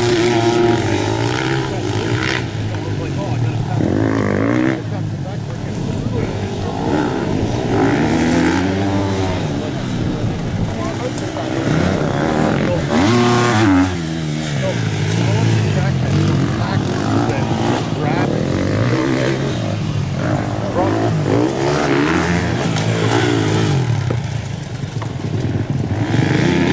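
A dirt bike engine revs loudly, rising and falling in pitch.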